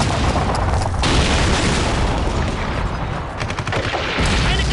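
An explosion booms nearby with a deep rumble.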